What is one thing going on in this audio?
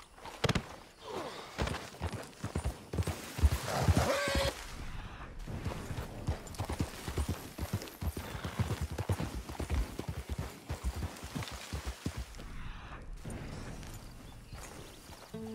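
A horse's hooves gallop over dry ground.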